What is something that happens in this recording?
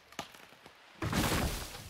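A tree cracks and crashes to the ground.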